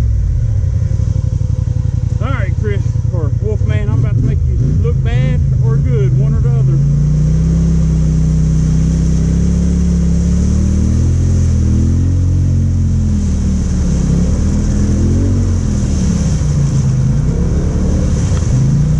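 An engine rumbles close by and revs up and down.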